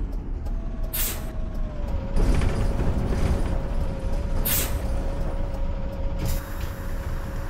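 Bus air brakes hiss sharply.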